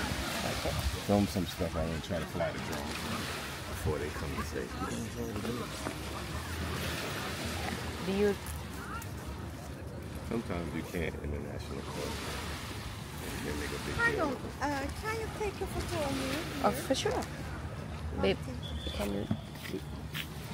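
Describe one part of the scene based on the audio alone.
Small waves lap gently on a beach.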